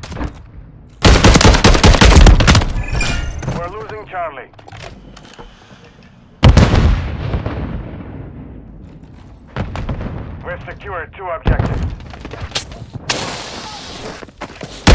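Rapid gunfire bursts out loudly in short volleys.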